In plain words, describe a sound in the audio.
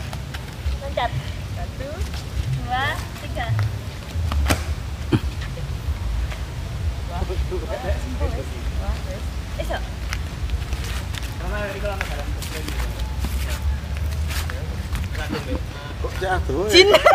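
Young women talk and laugh nearby, outdoors.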